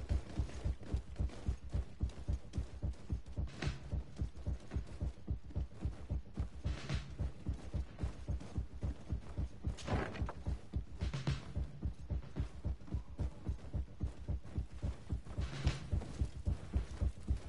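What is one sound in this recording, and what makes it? Quick footsteps thud across a wooden floor.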